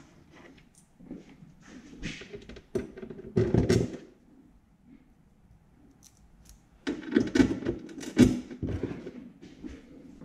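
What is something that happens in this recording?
Cardboard and plastic rustle and scrape as hands handle a box.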